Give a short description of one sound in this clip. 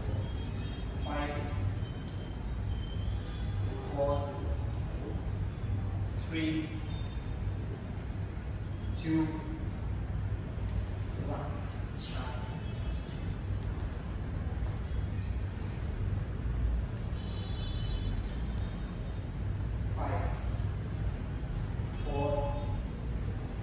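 A man calls out instructions with pauses, in an echoing room.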